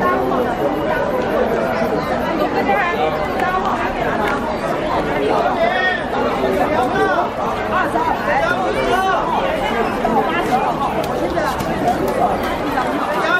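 A large crowd of men and women chatters loudly all around outdoors.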